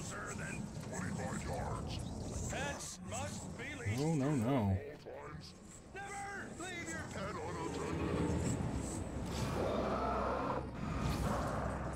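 A middle-aged man talks with animation into a microphone.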